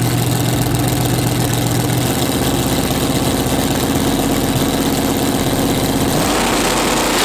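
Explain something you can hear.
A powerful car engine idles with a loud, lumpy rumble.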